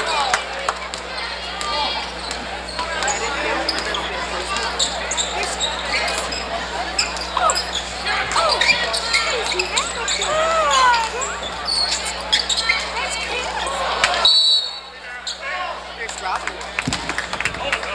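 A crowd chatters and cheers loudly in a large echoing gym.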